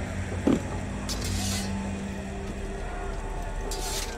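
A sword scrapes as it is drawn from its sheath.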